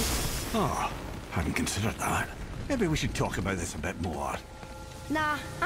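A man answers in a deep, calm voice.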